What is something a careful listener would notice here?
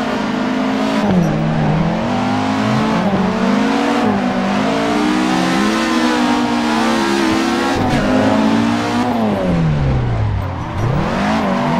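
Tyres squeal on tarmac.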